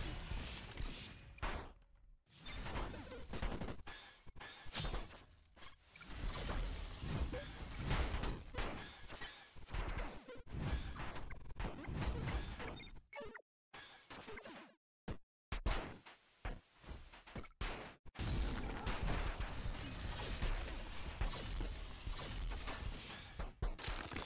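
Punches and blasts from a fighting game thud and crack in quick bursts.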